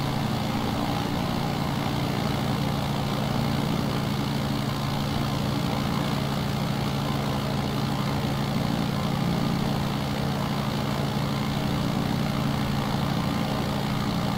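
Wind rushes past a small plane in flight.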